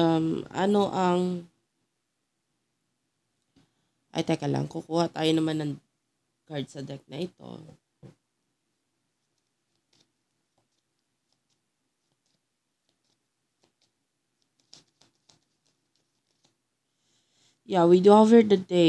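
A young woman speaks calmly and close into a microphone.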